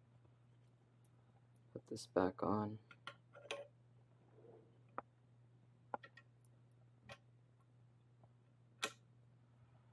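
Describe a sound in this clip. Metal parts click and clink as they are handled and fitted together.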